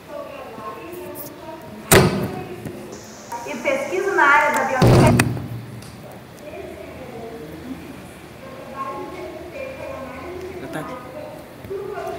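A woman speaks calmly over an online call through a loudspeaker.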